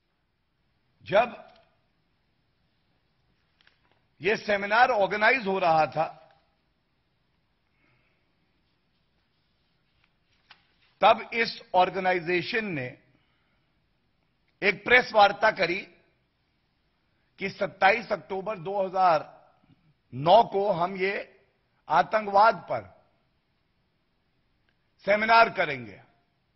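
A man speaks into a microphone in measured bursts with pauses between.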